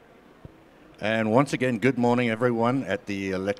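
A middle-aged man speaks calmly into a microphone over a loudspeaker.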